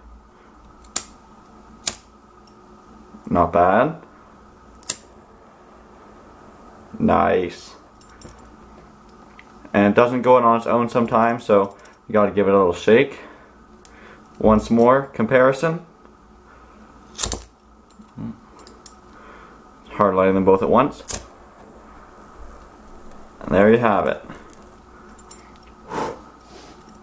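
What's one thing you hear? Lighters click and flick as they are struck.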